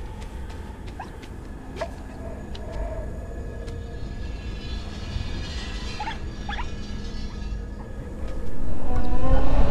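A heavy metal ball rolls and rumbles over stone.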